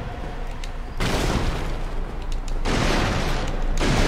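Wooden crates smash and splinter with a loud crash.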